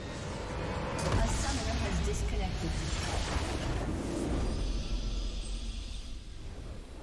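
A deep rumbling explosion booms.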